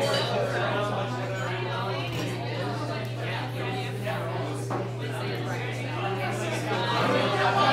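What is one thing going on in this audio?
An acoustic guitar is strummed steadily.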